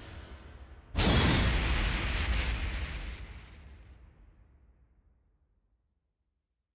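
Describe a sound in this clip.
A deep impact booms and slowly fades.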